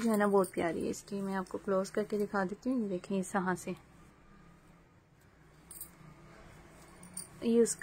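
Fabric rustles as it is handled and folded.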